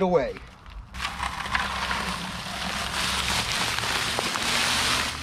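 Dry powder pours and hisses into a bucket.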